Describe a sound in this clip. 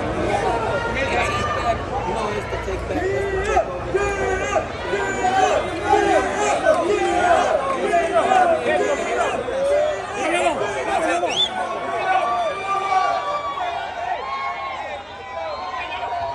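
A crowd of men and women talk and shout all at once, close by.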